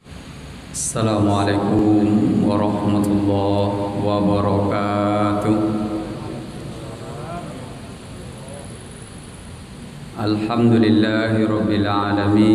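A middle-aged man speaks steadily into a microphone, heard through loudspeakers in an echoing hall.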